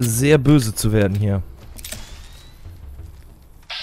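A revolver's cylinder clicks as it is reloaded.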